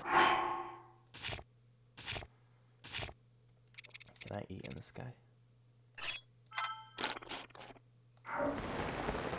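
Menu selections click and blip.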